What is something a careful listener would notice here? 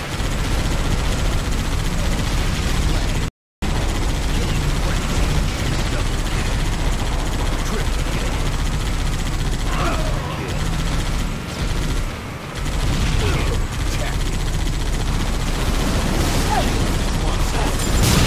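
A mounted machine gun fires rapid bursts.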